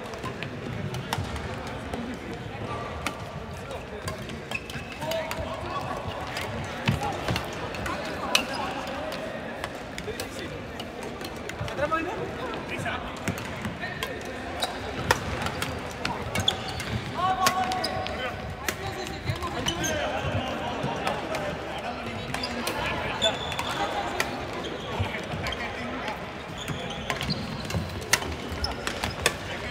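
Badminton rackets strike shuttlecocks with sharp pops, echoing in a large hall.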